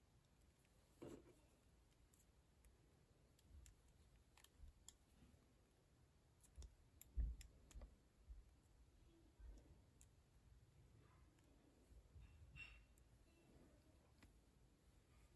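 A small metal hook softly ticks and rubs against rubber bands.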